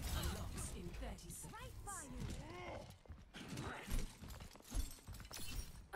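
Footsteps thud on stone as a character runs.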